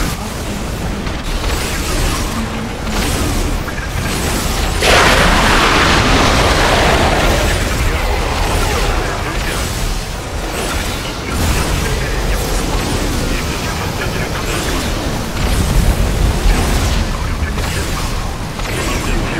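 Game weapons fire in rapid bursts.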